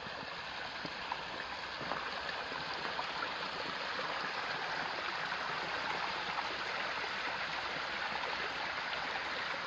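A small stream of water trickles and splashes steadily over rocks.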